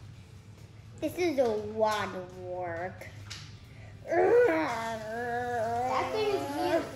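A young boy sings loudly nearby.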